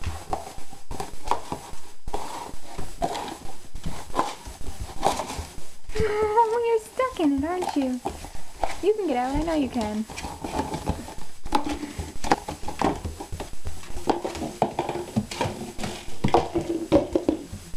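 A puppy knocks and chews a plastic cup across a hard floor.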